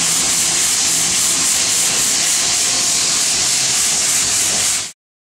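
A sanding block rasps rhythmically back and forth over a panel.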